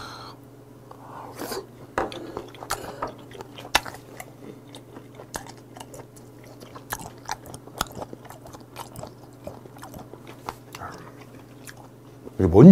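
A man chews and slurps food close to a microphone.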